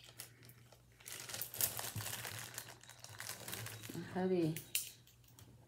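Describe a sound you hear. A plastic bag crinkles and rustles in someone's hands.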